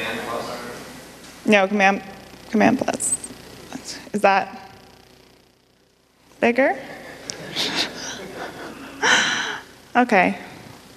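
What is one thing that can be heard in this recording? A young woman speaks calmly into a microphone in a large echoing room.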